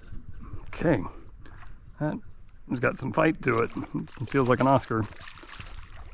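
Something splashes in the water close by.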